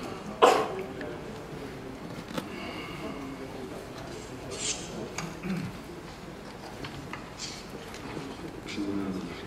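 A middle-aged man reads out calmly into a microphone.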